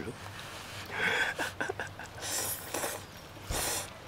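A young woman slurps noodles up close.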